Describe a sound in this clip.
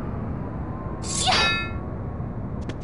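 A bright magical chime shimmers and falls in pitch.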